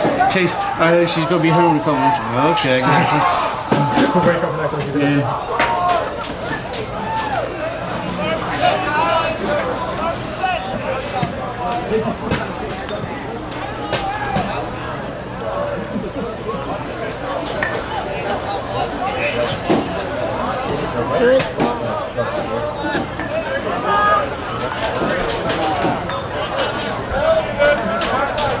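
A crowd of people chatters and calls out outdoors, some way off.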